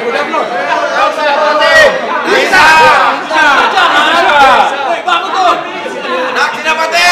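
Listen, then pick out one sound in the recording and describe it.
A large crowd of men and women cheer and shout together.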